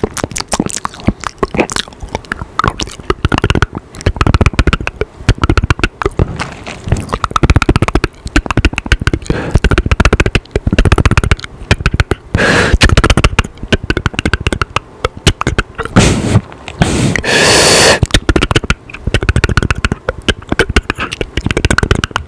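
A young man whispers very close to a microphone.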